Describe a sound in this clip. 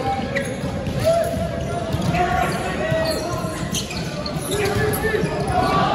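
Sports shoes squeak on a wooden court.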